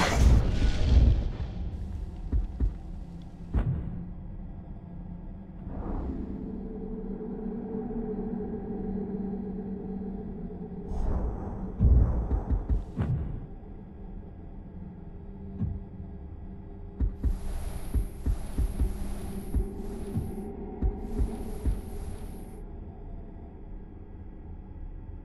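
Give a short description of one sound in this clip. Soft game menu clicks and whooshes sound as options are selected.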